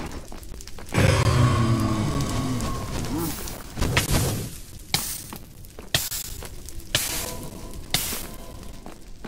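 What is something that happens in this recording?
A fiery creature hisses and shoots fireballs with loud whooshing bursts.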